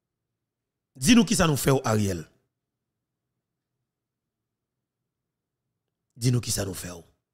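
A man speaks briefly and calmly into a close microphone, in two short bursts.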